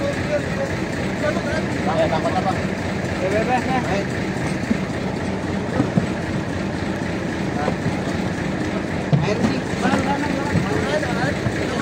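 Men talk nearby in animated voices.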